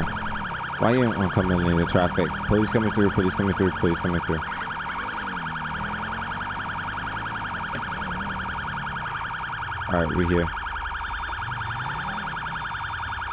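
A police siren wails steadily throughout.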